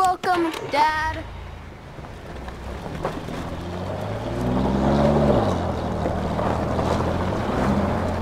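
A truck engine rumbles and revs as the truck pulls away.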